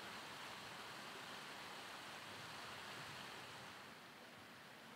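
Water rushes gently over a low weir.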